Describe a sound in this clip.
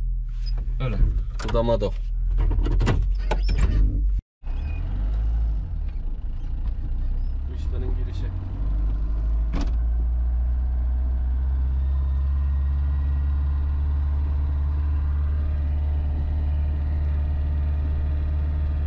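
A car engine hums steadily from inside the vehicle.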